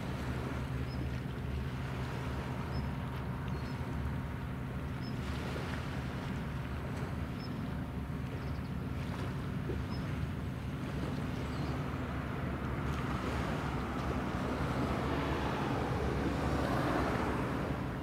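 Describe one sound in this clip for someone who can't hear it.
A large ship's engine hums low and steady across the water.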